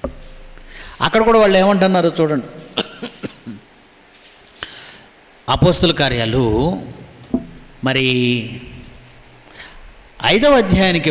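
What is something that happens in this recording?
A man speaks slowly and calmly into a microphone, with pauses between phrases.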